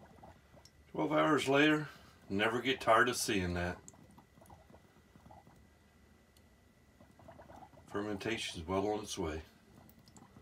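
An airlock bubbles and gurgles in short bursts.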